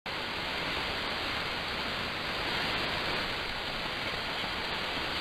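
A radio receiver hisses with steady, rushing static.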